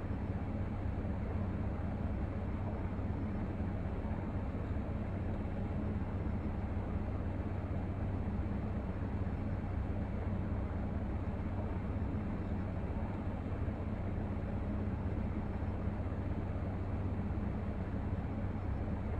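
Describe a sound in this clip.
A jet engine hums steadily as an aircraft taxis.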